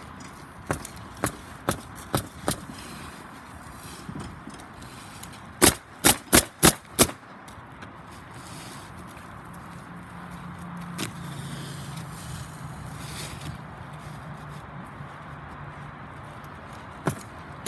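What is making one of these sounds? A pneumatic nail gun fires in quick sharp bursts.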